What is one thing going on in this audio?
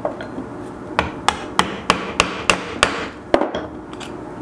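A hammer taps sharply on a metal punch in quick, even blows.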